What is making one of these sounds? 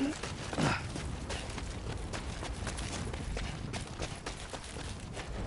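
Footsteps crunch quickly on rocky ground.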